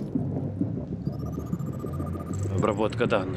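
An electronic scanning tone rises in pitch.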